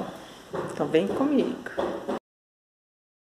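A woman speaks calmly close to a phone microphone.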